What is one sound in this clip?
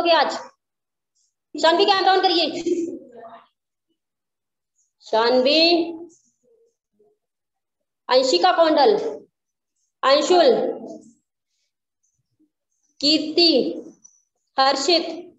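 A woman speaks close to a phone microphone in short bursts with pauses.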